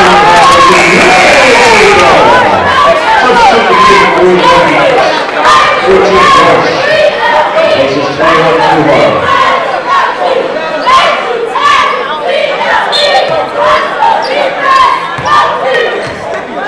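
A crowd cheers and chatters loudly in a large echoing gym.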